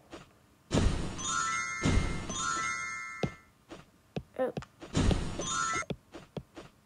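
A bright chiming jingle plays.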